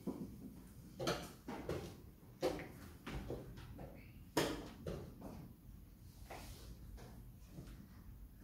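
A chess piece is set down on a wooden board with a soft click.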